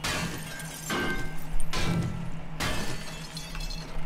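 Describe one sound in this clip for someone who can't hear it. An axe strikes a stump with sharp knocks.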